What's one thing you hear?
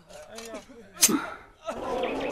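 A metal sword rings sharply.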